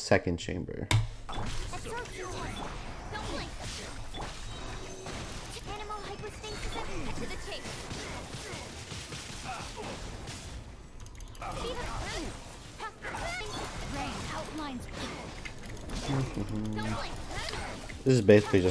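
Game combat effects whoosh, zap and clash steadily.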